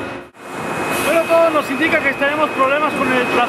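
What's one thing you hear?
A man talks calmly close by.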